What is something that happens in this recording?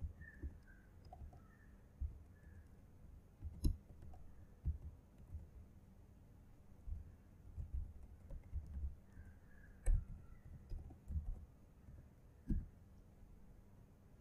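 Laptop keys click softly as a man types.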